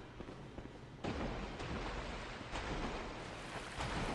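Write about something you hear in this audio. Water splashes and sloshes underfoot.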